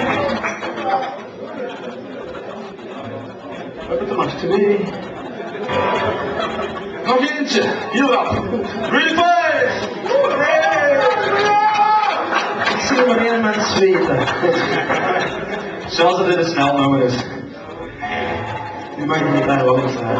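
Electric guitars play loudly through amplifiers.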